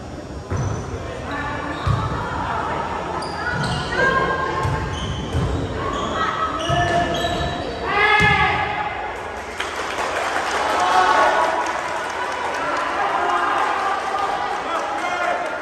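Young men shout and call out to each other across the court.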